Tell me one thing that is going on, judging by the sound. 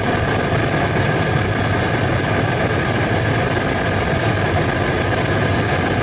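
Drums and cymbals are played in a steady beat.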